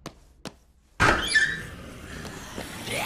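A pair of doors bursts open with a loud rush.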